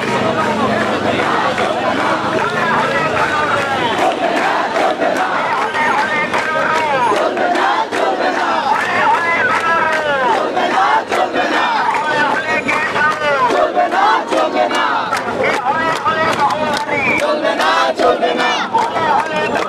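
A large crowd of young men and women chants and cheers loudly outdoors.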